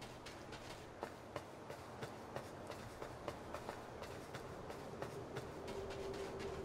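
Light footsteps patter steadily up a stone staircase.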